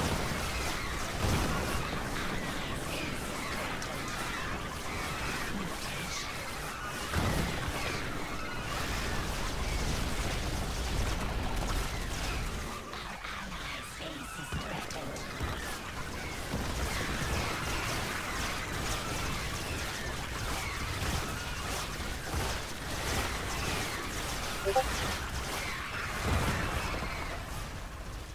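Game battle sounds of clashing creatures and bursts of fire play steadily.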